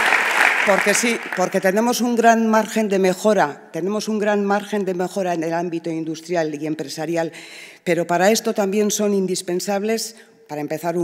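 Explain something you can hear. A middle-aged woman speaks calmly into a microphone over loudspeakers.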